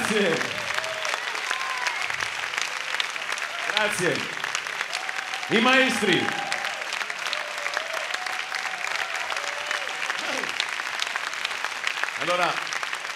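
A big band plays swing music on a stage.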